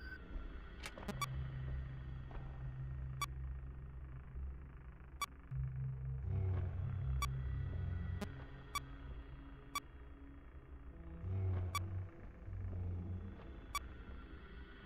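Electronic beeps sound at a steady pace.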